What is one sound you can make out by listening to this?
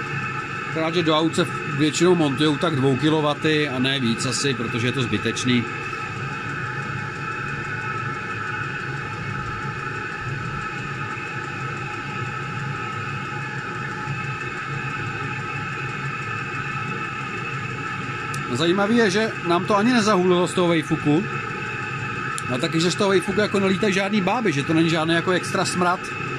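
A heater's fan hums steadily throughout.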